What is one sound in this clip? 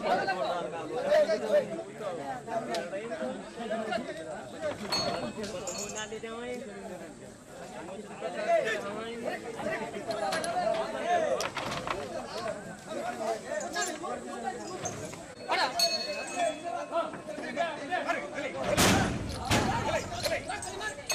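Metal chains clank as an elephant shuffles its feet.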